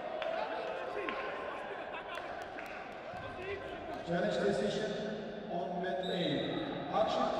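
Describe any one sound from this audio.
Scattered voices murmur in a large echoing hall.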